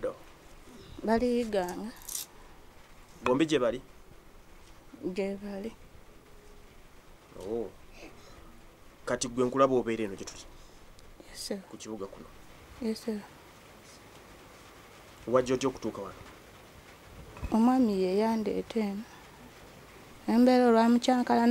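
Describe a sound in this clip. A woman speaks calmly, close to a microphone, in short phrases with pauses.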